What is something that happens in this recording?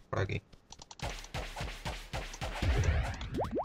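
Rapid game hit sounds clatter in quick succession.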